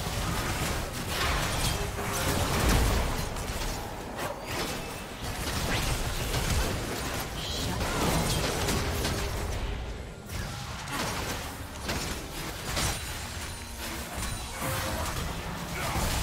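Game spell effects burst and crackle in quick succession.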